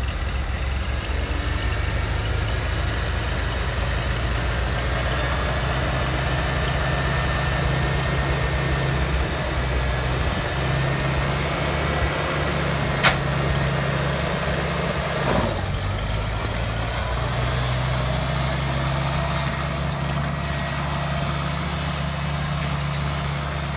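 An old tractor engine chugs and idles steadily, then revs as the tractor pulls away.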